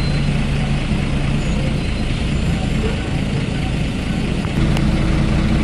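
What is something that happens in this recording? A bus engine hums and drones steadily.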